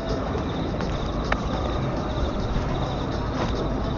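A figure scrambles and scrapes while climbing up a wall.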